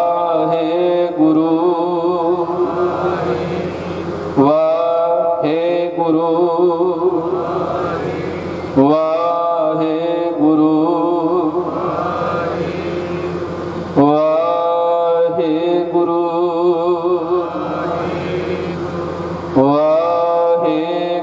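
A man sings a slow devotional chant into a microphone, heard through a loudspeaker.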